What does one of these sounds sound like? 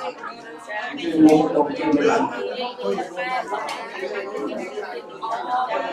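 A crowd of men and women chatter together close by.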